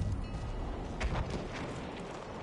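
Gunfire cracks sharply nearby.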